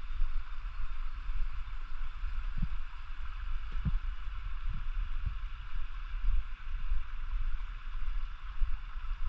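A stream babbles steadily over rocks nearby.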